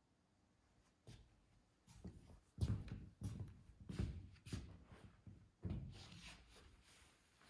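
Footsteps thud on a hollow wooden floor in an echoing room.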